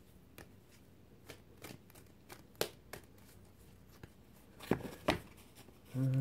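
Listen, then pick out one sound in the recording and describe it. Playing cards click and snap as they are handled.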